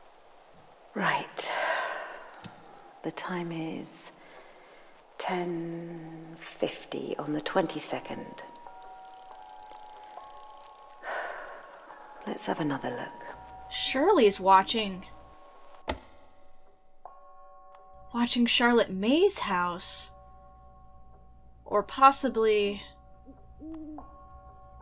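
A young woman talks calmly into a microphone close by.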